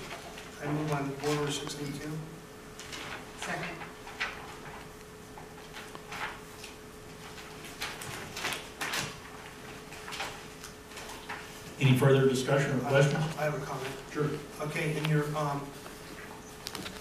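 A middle-aged man speaks calmly into a microphone, reading out.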